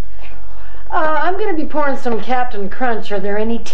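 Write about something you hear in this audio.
A woman speaks loudly with animation, close by.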